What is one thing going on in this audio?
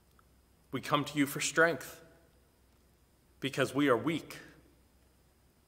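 A middle-aged man reads aloud calmly and slowly, close by, in a room with a slight echo.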